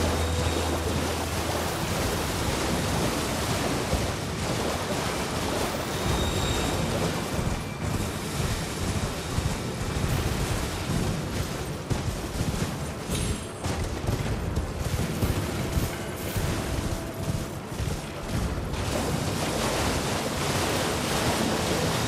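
Horse hooves splash steadily through shallow water.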